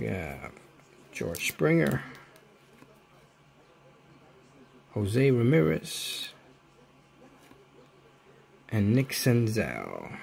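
Trading cards slide and rub against each other.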